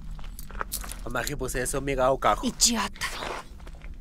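A woman speaks urgently and frightened, close by.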